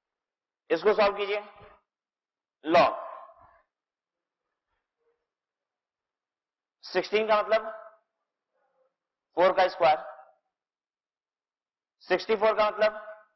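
A man speaks calmly in short phrases with pauses, as if explaining.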